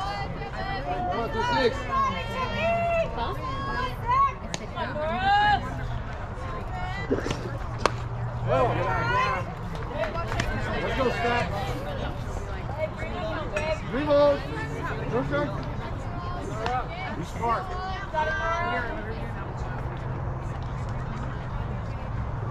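Young women shout and cheer from across an open field.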